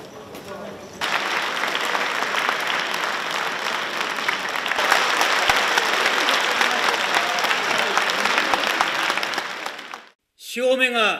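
A large crowd shouts and chants in an echoing hall.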